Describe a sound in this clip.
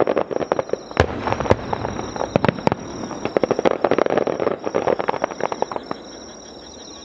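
Fireworks crackle and pop rapidly in bursts.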